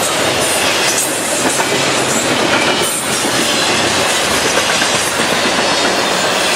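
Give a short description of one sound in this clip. Steel wheels squeal and clank on the rails.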